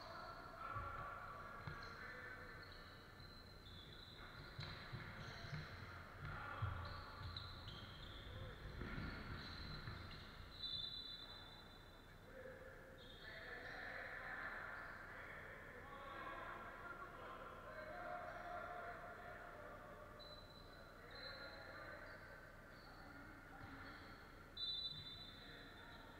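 Players shout to each other in a large echoing hall.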